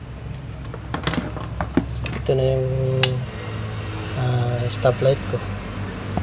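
A plastic housing knocks and rattles as it is handled.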